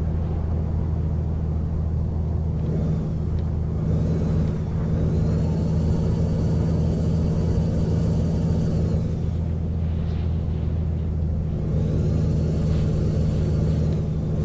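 Tyres roll on a road with a steady rumble.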